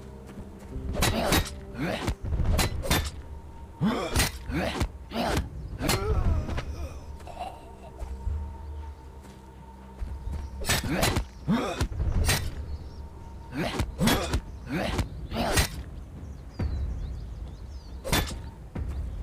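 An axe swings and strikes a zombie with heavy blows.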